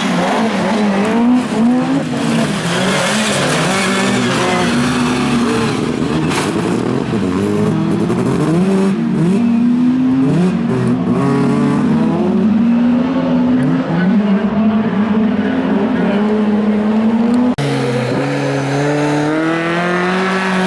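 Tyres skid and spray gravel across a dirt track.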